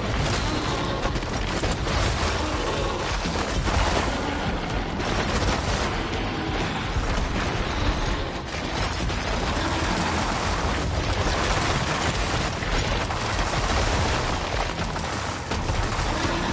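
Loud blasts and crashing debris rumble on and off.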